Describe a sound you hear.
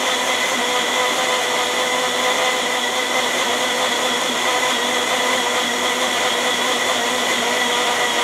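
A blender motor whirs loudly and steadily, churning liquid.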